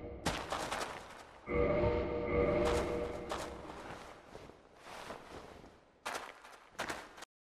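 Heavy armored footsteps clank on stone.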